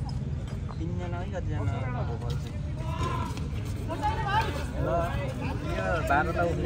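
A crowd murmurs outdoors.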